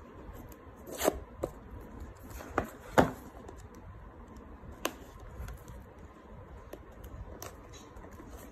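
Plastic film crinkles as fingers pick at a box's wrapping.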